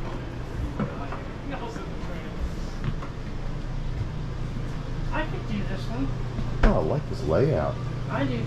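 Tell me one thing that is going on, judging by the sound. A refrigerator door swings open.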